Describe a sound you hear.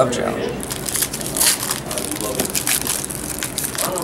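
A foil wrapper crinkles as a pack is torn open.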